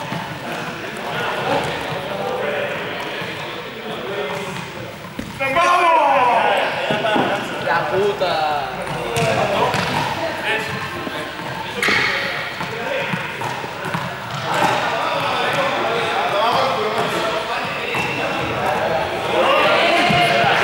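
Young men call out and talk in a large echoing hall.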